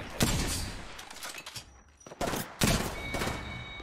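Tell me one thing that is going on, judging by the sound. Gunshots crack loudly several times.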